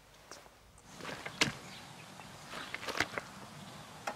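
Footsteps rustle through dry grass close by.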